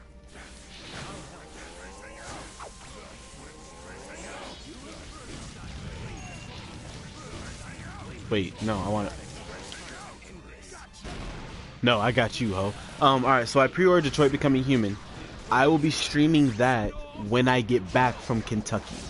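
Blows and energy blasts crackle and crash.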